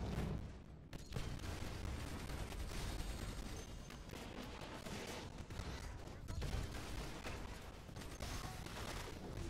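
Energy blasts zap and whoosh repeatedly.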